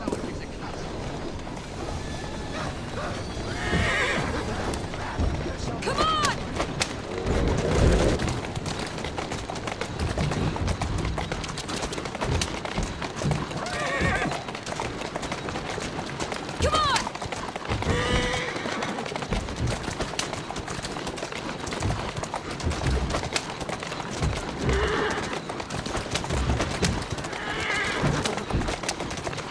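Carriage wheels rumble over a rough street.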